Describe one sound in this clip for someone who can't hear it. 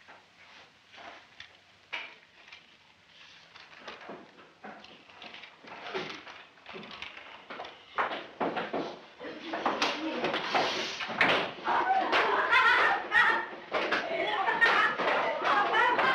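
Paper rustles and crinkles as it is unfolded and handled.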